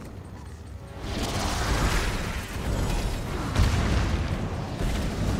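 A large magical portal whooshes and roars.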